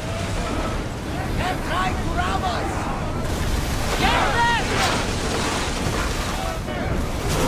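Rough sea waves crash and splash against a ship's hull.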